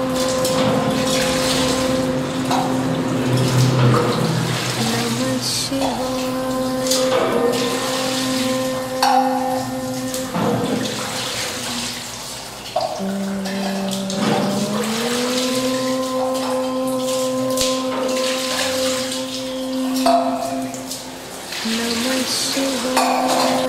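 Small metal vessels clink and tap on a stone surface.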